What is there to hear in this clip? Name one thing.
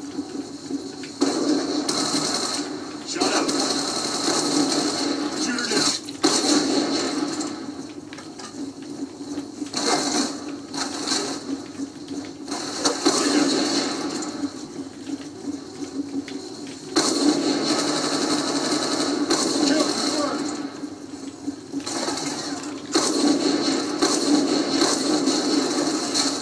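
Racing car engines roar through loudspeakers in bursts.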